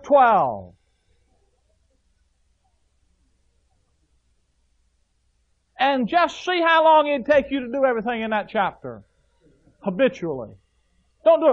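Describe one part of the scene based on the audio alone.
A man preaches through a microphone, speaking in short bursts with long pauses.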